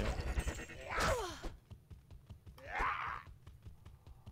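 A magic spell bursts with a whooshing crackle.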